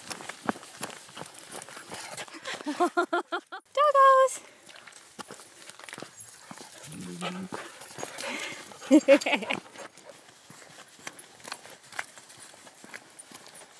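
Dogs splash as they run across wet sand.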